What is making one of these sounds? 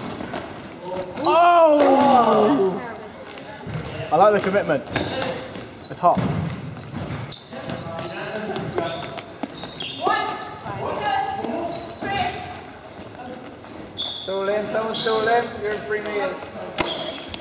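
Young men and women shout and call out to each other in a large echoing hall.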